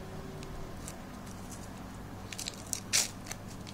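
Paper crinkles softly as it is unwrapped.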